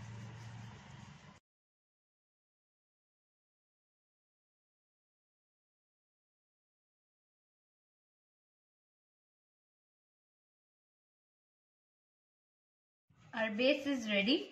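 A rolling pin rolls dough on a board.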